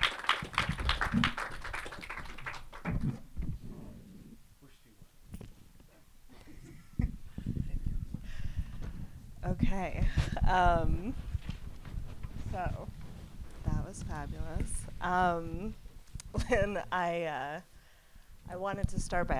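A young woman talks and laughs into a microphone.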